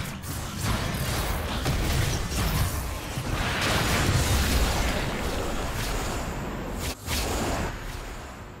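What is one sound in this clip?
Game combat effects clash and crackle loudly.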